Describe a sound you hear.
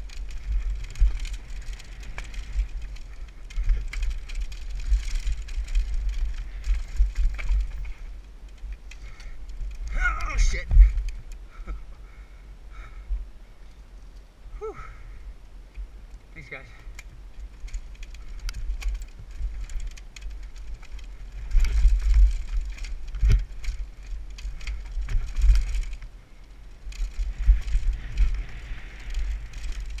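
Bicycle tyres crunch over a rocky dirt trail.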